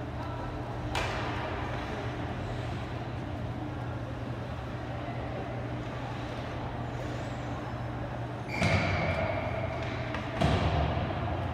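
A hockey stick smacks a puck.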